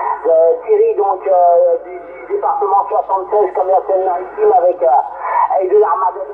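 A voice speaks over a radio loudspeaker, thin and narrow-sounding.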